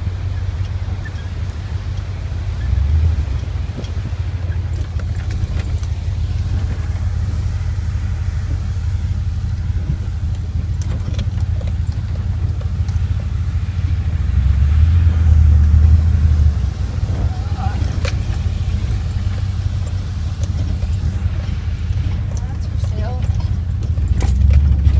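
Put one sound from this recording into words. A car engine rumbles steadily as the car drives slowly.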